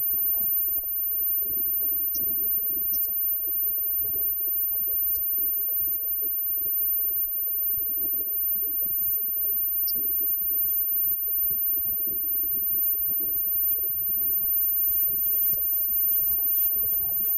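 A live band plays rock music loudly in a room.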